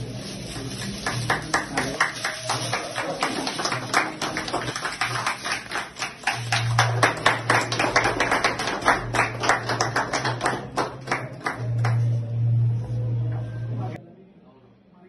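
A group of men clap their hands steadily.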